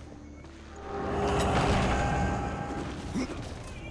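A magical blast roars and swirls.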